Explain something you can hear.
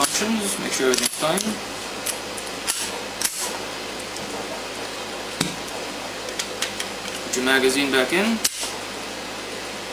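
Metal parts of a pistol click and clack as it is handled.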